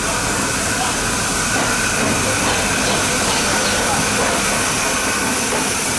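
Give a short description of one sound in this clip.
A steam locomotive chuffs as it pulls away.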